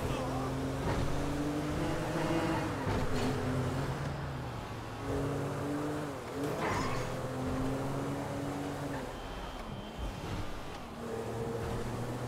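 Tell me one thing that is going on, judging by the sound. A car engine revs hard, its pitch rising and dropping with each gear change.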